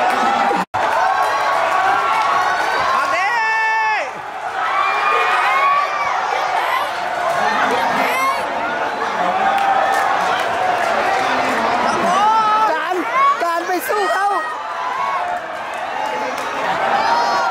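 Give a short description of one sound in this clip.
Fans close by shout and sing excitedly.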